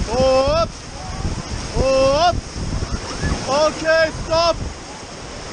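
Young people on a raft whoop and shout with excitement close by.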